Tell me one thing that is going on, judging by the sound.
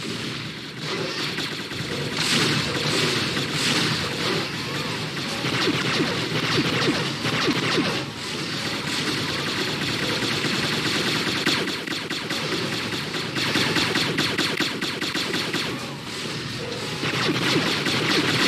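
A gunship engine roars and hums steadily.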